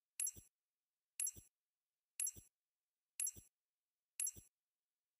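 A game's countdown timer beeps once every second.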